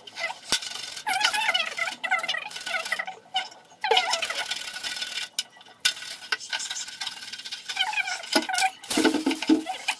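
Plastic film crinkles as it is peeled off metal.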